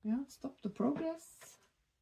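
Playing cards rustle as a hand shuffles them.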